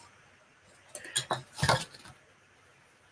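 Wooden objects knock and clatter.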